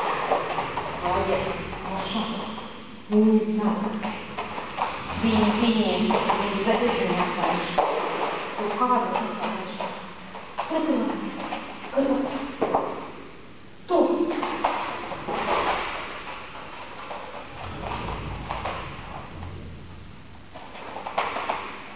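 A woman talks to a dog with animation in an echoing room.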